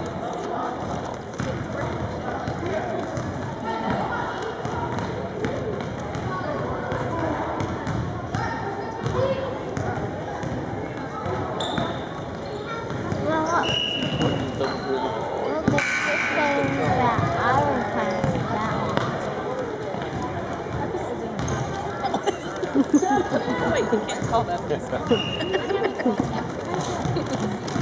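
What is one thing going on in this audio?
Children call out and chatter in a large echoing hall.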